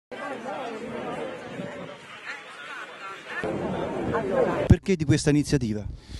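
A crowd of people talks and chatters outdoors.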